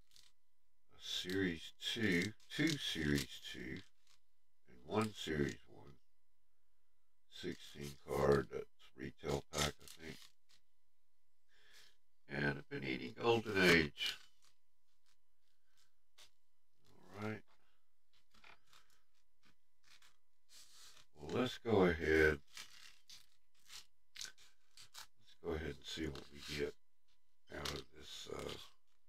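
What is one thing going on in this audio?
An older man talks calmly into a close microphone.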